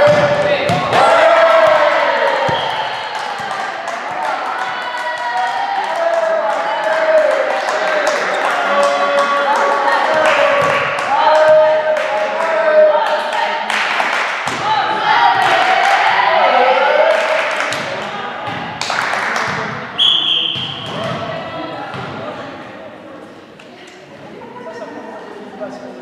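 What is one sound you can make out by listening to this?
Young girls shout and call out to one another in a large echoing hall.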